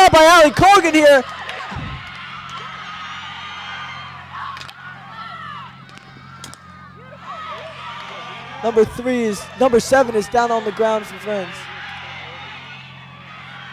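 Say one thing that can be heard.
A crowd of young spectators shouts and cheers outdoors.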